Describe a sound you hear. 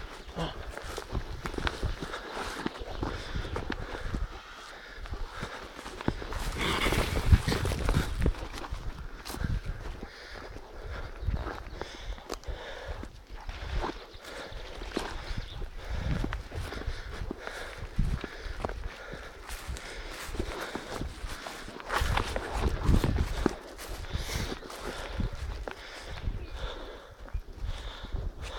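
Footsteps rustle and crunch through brush and dry undergrowth.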